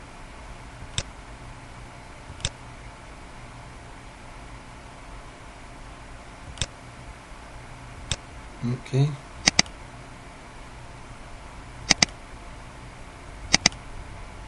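A computer mouse clicks now and then, sometimes twice in quick succession.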